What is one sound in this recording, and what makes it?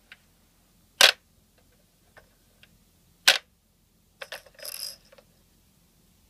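Plastic toy buttons click.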